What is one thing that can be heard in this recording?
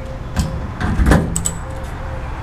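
A fuel nozzle clunks into a car's filler neck.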